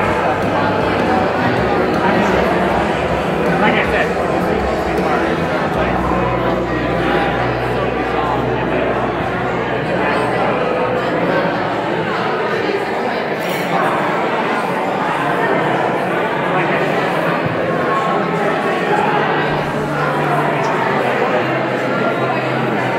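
A crowd of guests chatters loudly throughout, in a large echoing hall.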